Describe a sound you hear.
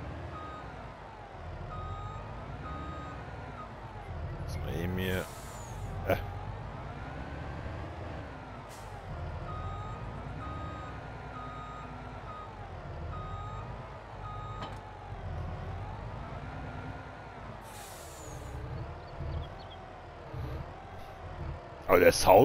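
A heavy truck's diesel engine rumbles and hums steadily.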